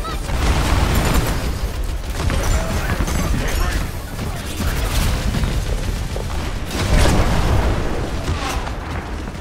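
Footsteps thud quickly in a game.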